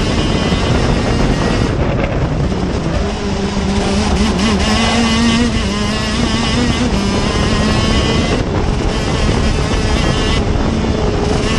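Wind rushes and buffets past at speed.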